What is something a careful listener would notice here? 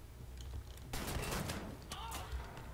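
A heavy gun fires a short, loud burst.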